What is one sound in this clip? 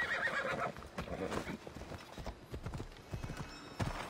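A horse's hooves clop on rocky ground.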